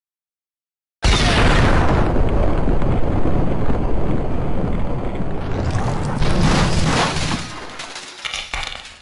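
A loud explosion roars and rumbles.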